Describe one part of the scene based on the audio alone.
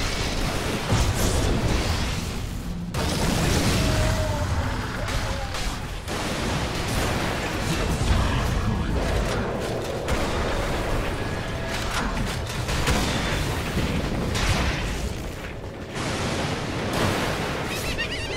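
Magic blasts and weapon clashes crackle in a fast, noisy fight.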